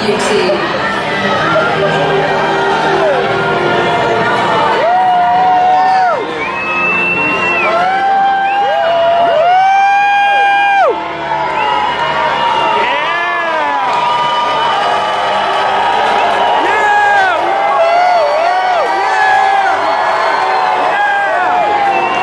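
Music plays loudly through loudspeakers in a large echoing arena.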